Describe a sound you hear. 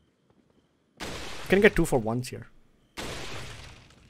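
A rifle shot bangs and echoes.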